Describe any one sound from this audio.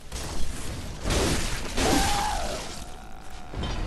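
A heavy blade slashes and strikes flesh.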